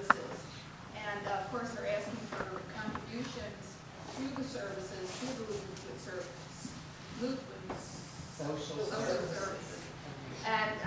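An elderly woman speaks calmly to a group.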